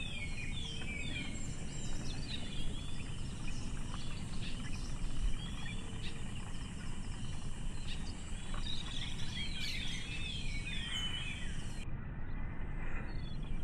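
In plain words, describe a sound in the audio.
A small bird chirps in quick, high twitters.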